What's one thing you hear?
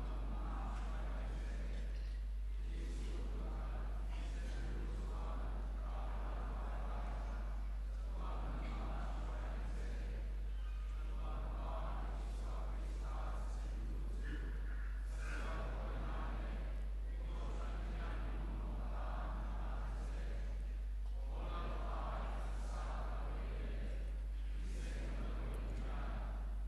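A man speaks steadily through loudspeakers in a large echoing hall.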